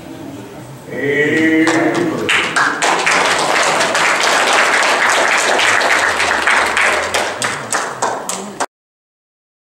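A congregation claps and cheers.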